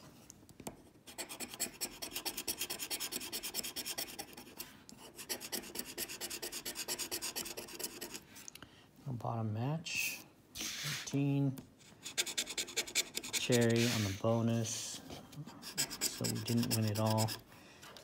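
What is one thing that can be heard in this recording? A coin scrapes rapidly across a scratch card.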